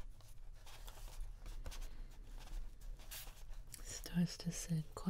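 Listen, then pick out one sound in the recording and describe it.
A paper page rustles softly as it is handled.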